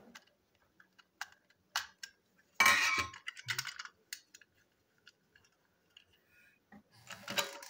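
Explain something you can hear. Small plastic parts click and rattle in hands.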